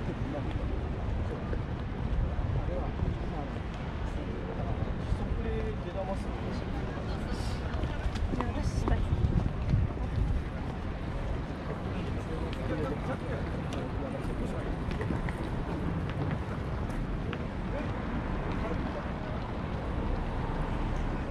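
Footsteps tap steadily on paving stones outdoors.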